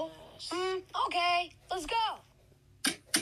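A cartoon character talks in a high, squeaky voice.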